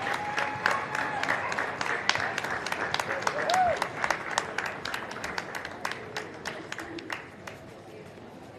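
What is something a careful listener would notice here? An audience applauds and cheers in a large echoing hall.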